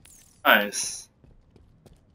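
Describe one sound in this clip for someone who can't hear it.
A man exclaims loudly into a microphone.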